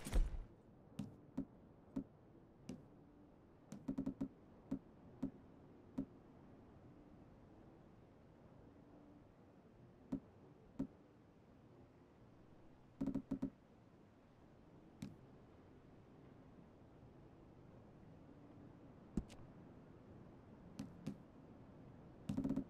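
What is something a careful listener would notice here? Soft clicks tick as a selection wheel turns.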